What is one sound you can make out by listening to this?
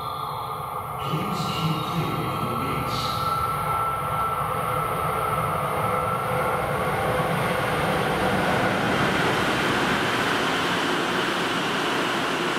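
An electric train approaches and rumbles loudly past on the rails, growing louder as it nears.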